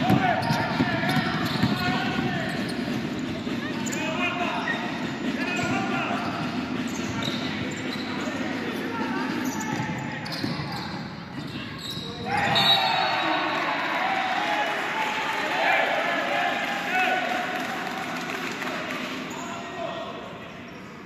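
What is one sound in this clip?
Basketball shoes squeak on a wooden court in a large echoing hall.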